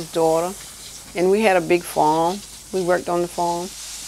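Water sprays from a hose onto plants with a soft hiss.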